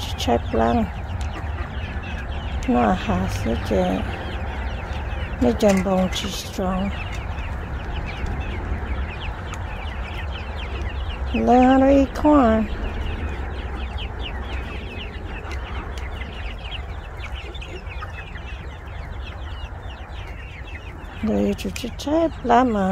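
A flock of young chickens pecks at corn kernels on dirt ground.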